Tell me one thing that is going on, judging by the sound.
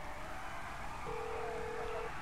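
A phone call tone beeps steadily.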